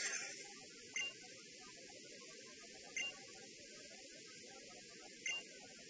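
A short electronic blip sounds several times.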